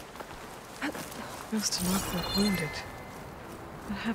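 Footsteps crunch in deep snow.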